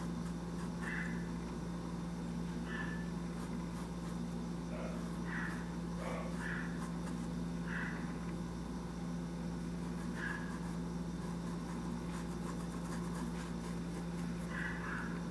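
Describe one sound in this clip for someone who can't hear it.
A paintbrush softly brushes across fabric.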